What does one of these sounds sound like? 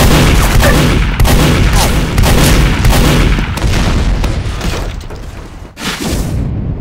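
A shotgun fires several loud blasts in quick succession.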